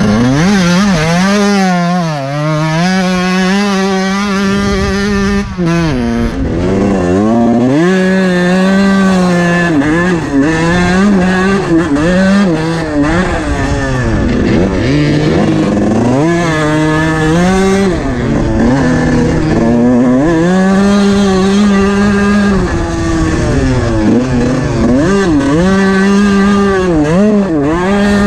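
A dirt bike engine revs loudly, rising and falling in pitch as the rider shifts gears.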